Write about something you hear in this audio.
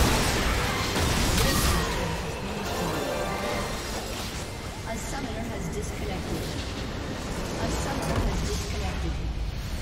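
Game combat effects clash and explode rapidly.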